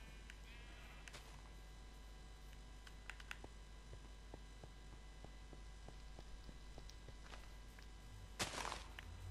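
Footsteps thud softly on grass and gravel in a steady walking rhythm.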